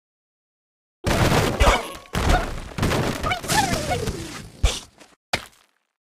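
Wooden blocks crash and topple.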